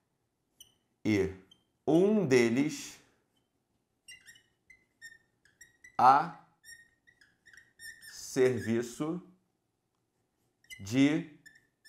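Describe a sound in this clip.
A man speaks calmly in short phrases close to a microphone.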